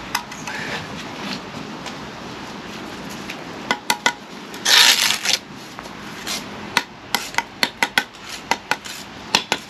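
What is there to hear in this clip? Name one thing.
A brick trowel scrapes and taps on bricks and mortar.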